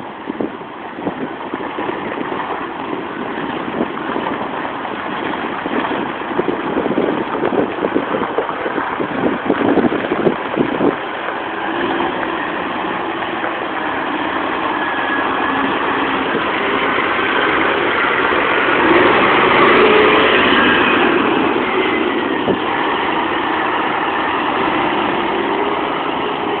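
A truck's diesel engine rumbles steadily close by.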